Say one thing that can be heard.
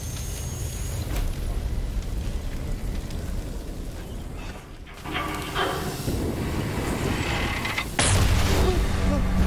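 A fire roars with a deep, steady rumble.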